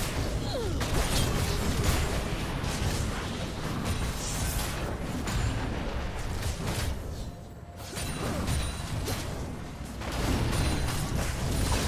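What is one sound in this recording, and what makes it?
Game characters strike each other with sharp hits.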